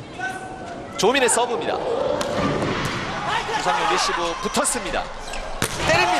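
A large indoor crowd cheers and drums in an echoing hall.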